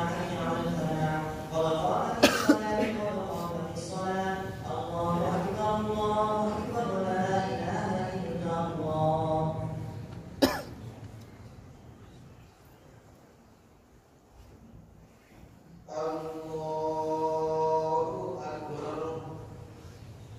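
A crowd of men chants together in a large echoing hall.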